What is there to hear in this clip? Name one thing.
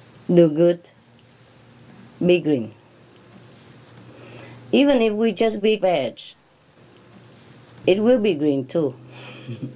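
A middle-aged woman speaks calmly, close by.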